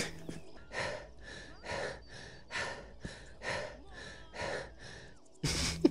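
A young woman pants heavily and rhythmically.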